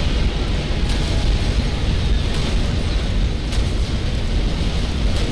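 A deep, steady rumble of battle booms throughout.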